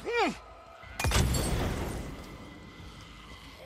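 A thrown bottle smashes and bursts into flames with a loud whoosh.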